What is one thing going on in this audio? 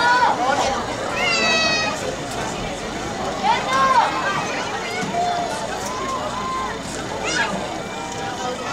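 A crowd murmurs and cheers in the stands nearby.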